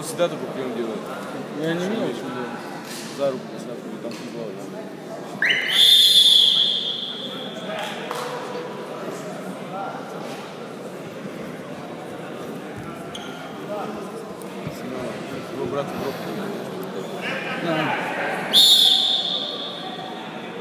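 Spectators chatter in the background.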